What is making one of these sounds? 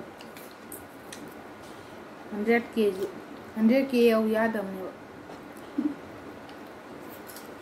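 A boy chews and eats food noisily.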